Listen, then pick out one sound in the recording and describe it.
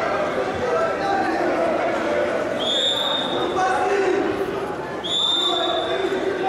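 A crowd shouts and chants in a large echoing hall.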